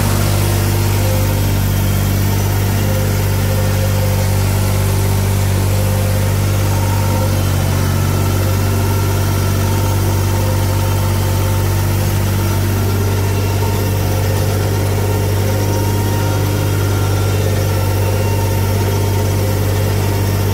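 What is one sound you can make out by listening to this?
A tractor engine rumbles steadily up close.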